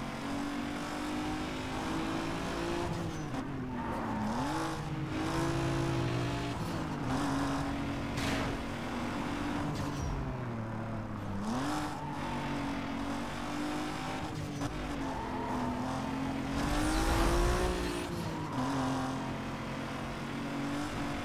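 A car engine roars at high speed, its pitch rising and dropping as gears shift.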